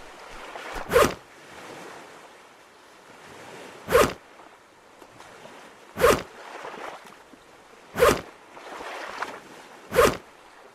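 Wooden sticks thud down sharply, one after another.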